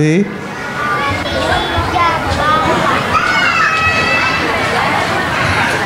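A young boy speaks into a microphone.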